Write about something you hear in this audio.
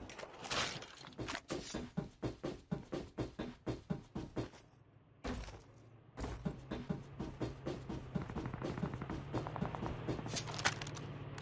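Quick footsteps thud on a metal roof.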